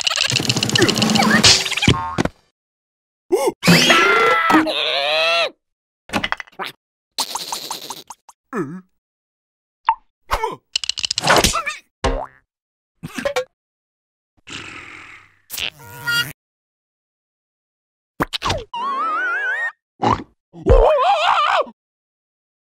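A second squeaky cartoon voice grumbles in short bursts.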